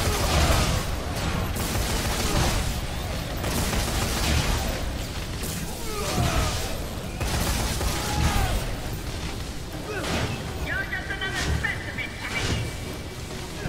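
A heavy machine clanks and grinds against metal.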